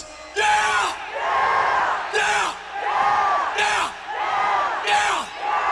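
A man shouts loudly into a microphone, his voice ringing through a loudspeaker.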